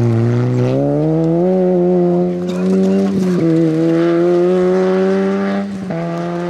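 A small four-cylinder rally car engine revs hard and shifts gears.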